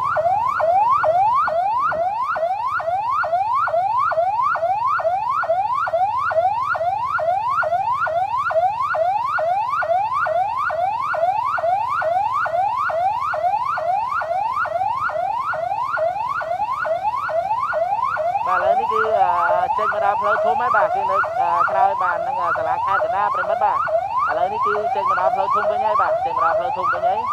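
A police van's siren wails in rapid rising sweeps.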